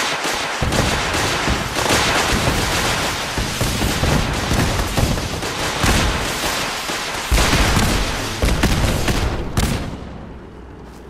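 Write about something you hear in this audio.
A heavy gun fires in loud rapid bursts.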